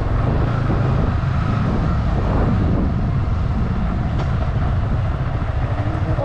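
Wind rushes past a moving motorcycle rider.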